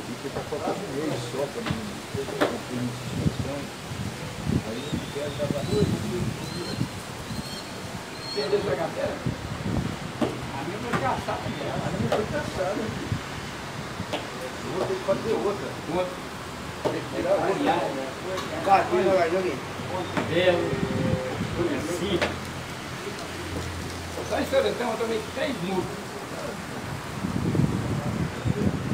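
Elderly men talk casually nearby.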